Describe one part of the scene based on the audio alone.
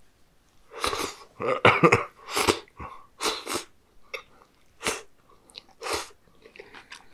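A man slurps and sucks food loudly and close up.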